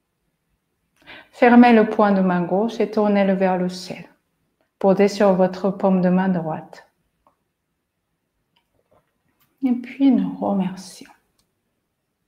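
A woman speaks calmly and slowly, close by, with pauses.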